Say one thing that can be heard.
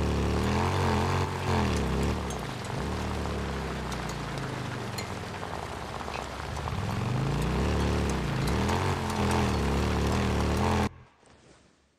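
A motorcycle engine roars and revs up and down.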